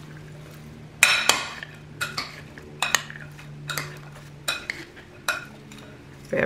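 A spoon clinks and scrapes against a bowl while stirring chunky food.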